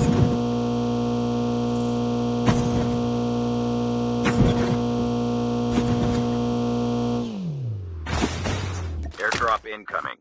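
A car engine drones steadily, then winds down.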